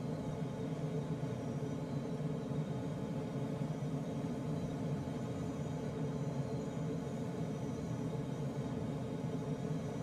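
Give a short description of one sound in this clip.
Air rushes steadily over a glider's canopy in flight.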